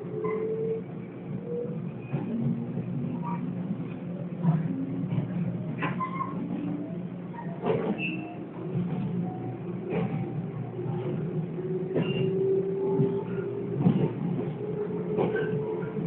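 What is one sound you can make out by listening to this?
A train rumbles steadily along the rails from inside a carriage.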